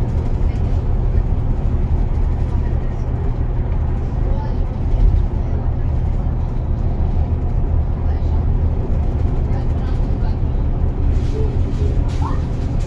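A vehicle's engine drones steadily as it drives along a highway.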